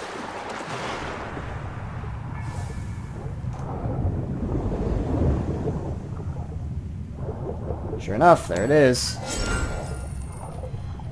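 Water churns and rumbles dully, as if heard from underwater.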